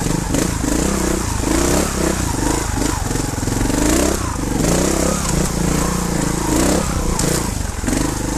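A dirt bike engine revs up and down, close by.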